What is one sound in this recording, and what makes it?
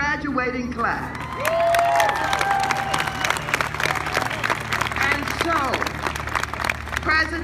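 A large outdoor crowd cheers and whoops loudly.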